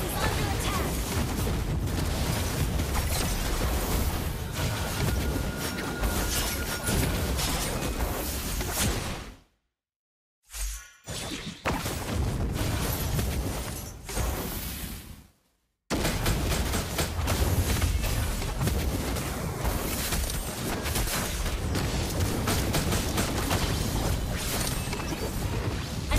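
Game battle effects clash and burst with rapid hits and blasts.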